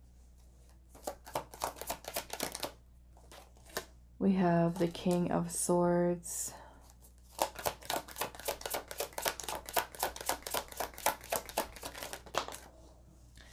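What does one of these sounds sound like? Playing cards are shuffled with quick, rapid flicks.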